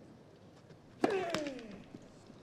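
A tennis racket strikes the ball hard.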